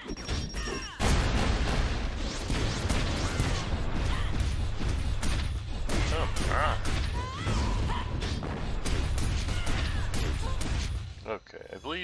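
Magic spells burst and crackle in quick succession.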